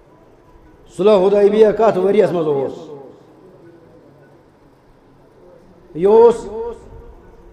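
An elderly man speaks slowly and with feeling into a headset microphone, heard through a loudspeaker.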